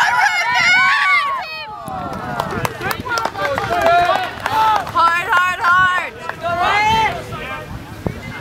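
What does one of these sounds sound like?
Several young men shout and cheer loudly nearby outdoors.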